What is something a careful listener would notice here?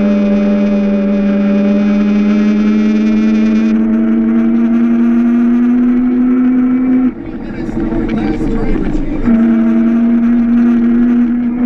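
Go-kart tyres rumble on asphalt.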